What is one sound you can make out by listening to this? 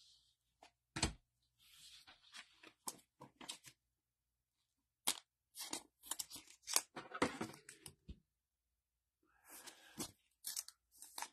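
Stiff plastic card sleeves crinkle and tap as they are handled.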